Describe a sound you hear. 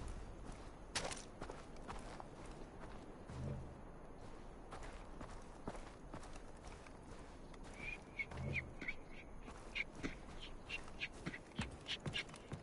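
Footsteps crunch on sand and thud on wooden boards.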